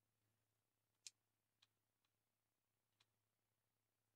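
Short interface clicks sound a few times.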